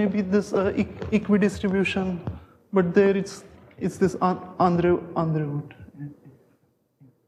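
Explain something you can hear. A man lectures with animation through a microphone in an echoing room.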